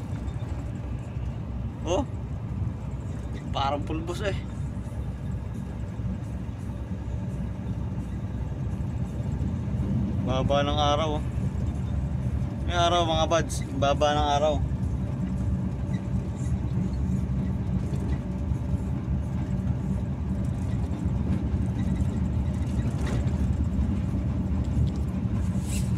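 A truck engine drones steadily as the cab rolls along the road.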